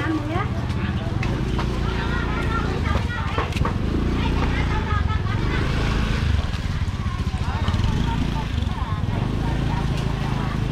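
A motor scooter engine idles and pulls away nearby.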